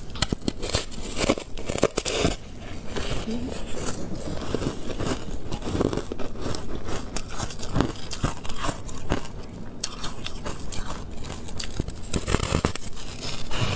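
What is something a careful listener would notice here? A young woman bites into a crisp sheet of candy with a loud crunch.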